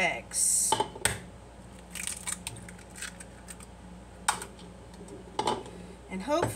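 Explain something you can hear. An egg cracks against a bowl.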